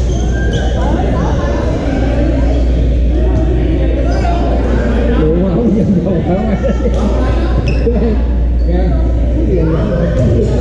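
Badminton rackets smack a shuttlecock.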